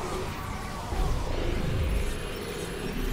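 A deep explosion booms.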